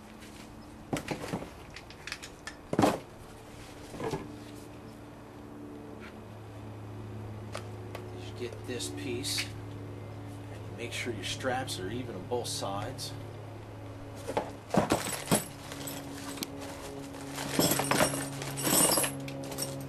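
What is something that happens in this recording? A seat belt buckle clicks and rattles.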